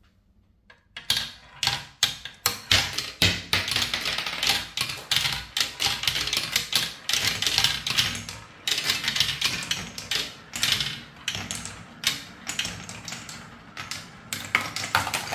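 Marbles roll and clack rapidly along a toy track.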